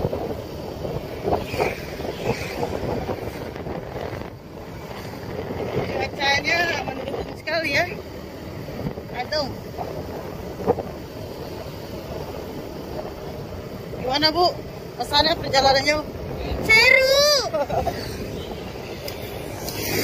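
Motorbikes pass by on the road.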